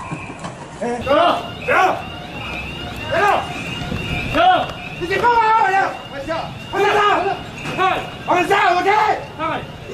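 A man shouts commands loudly nearby.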